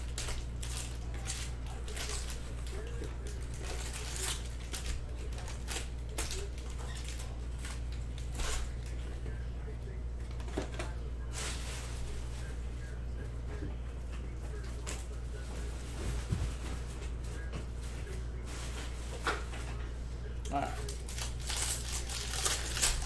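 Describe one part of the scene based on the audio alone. Foil card packs rustle and crinkle as they are handled.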